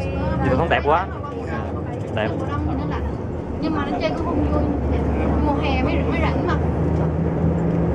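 An elderly man talks and laughs close by.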